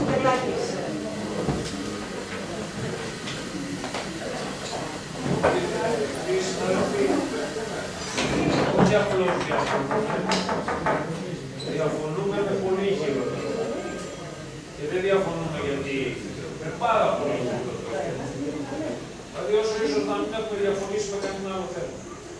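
A man speaks over a microphone in a room with some echo.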